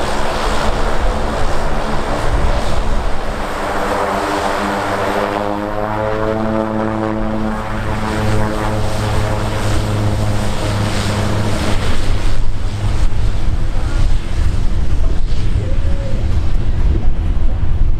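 A propeller plane's engines roar loudly as it taxis past.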